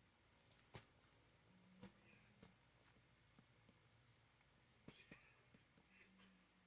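Wooden blocks thud softly as they are placed one after another.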